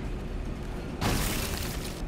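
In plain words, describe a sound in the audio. A weapon fires with a loud rushing blast.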